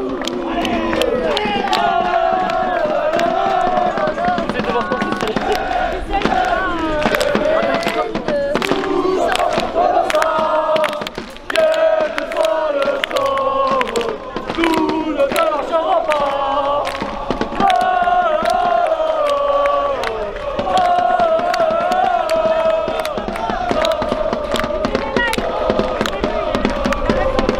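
A large crowd of fans chants and sings loudly outdoors.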